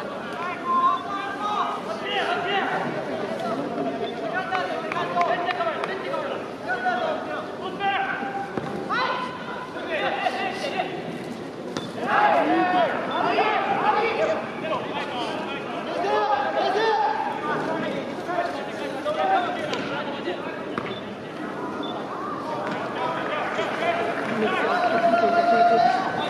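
A crowd of young supporters chants and sings loudly in an open stadium.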